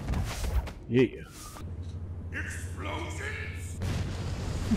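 A man speaks gruffly and boldly.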